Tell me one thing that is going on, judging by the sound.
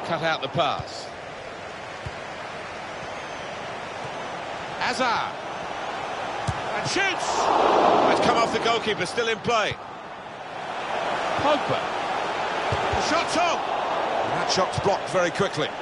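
A large crowd roars steadily in a stadium, swelling at times.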